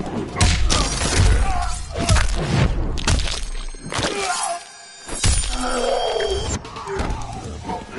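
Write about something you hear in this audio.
An electric crackle bursts as a bolt strikes.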